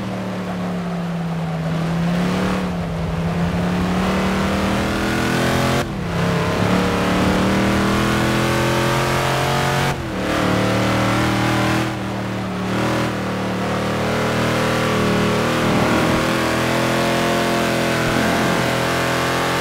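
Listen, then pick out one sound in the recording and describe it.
A racing car engine roars steadily, its pitch climbing and dropping sharply with each gear change.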